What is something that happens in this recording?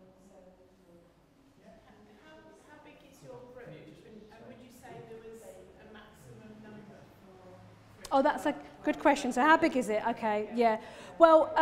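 A middle-aged woman speaks calmly from across a room.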